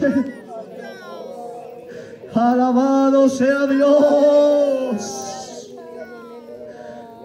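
A man speaks or sings with feeling through a microphone and loudspeakers outdoors.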